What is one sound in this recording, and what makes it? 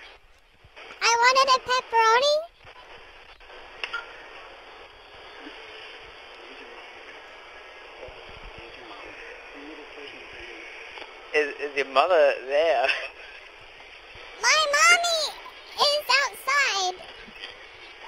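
A young child speaks in short, high bursts.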